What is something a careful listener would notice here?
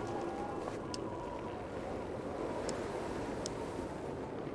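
Soft interface clicks sound as menu items change.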